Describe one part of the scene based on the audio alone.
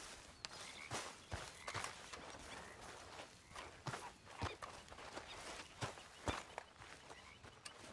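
Footsteps tread on grass.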